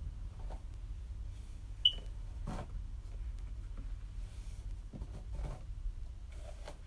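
Hands rustle softly through long hair.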